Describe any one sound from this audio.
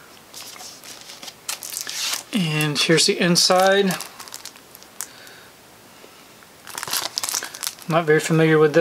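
Plastic packaging crinkles and rustles in a man's hands.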